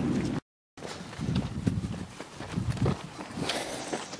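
Camel hooves thud softly on a dirt track.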